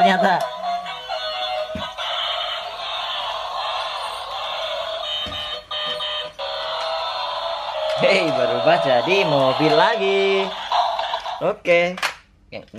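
A toy robot plays electronic music and sound effects through a small tinny speaker.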